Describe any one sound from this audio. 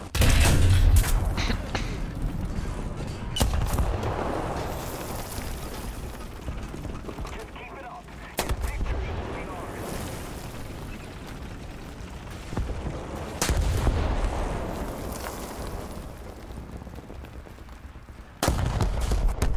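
Heavy cannon blasts boom now and then, each echoing away.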